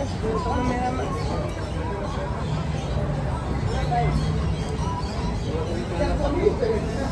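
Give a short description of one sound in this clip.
Several adults talk nearby outdoors, their voices mingling.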